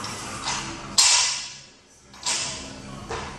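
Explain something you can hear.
A heavy barbell crashes down onto a rubber floor and bounces.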